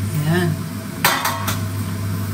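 A metal lid clanks as it is lifted off a pan.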